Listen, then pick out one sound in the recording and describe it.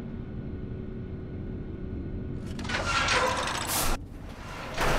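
A heavy metal door slides open with a grinding clank.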